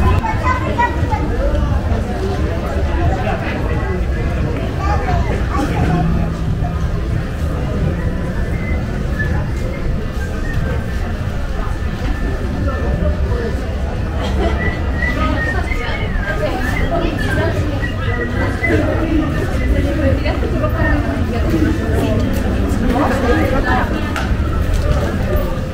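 Men and women chat at a distance in an open street.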